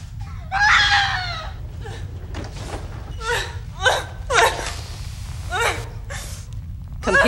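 A young woman screams and cries out in distress.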